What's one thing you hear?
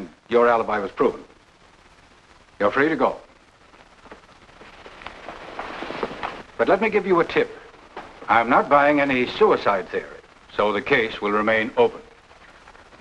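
An elderly man speaks gravely.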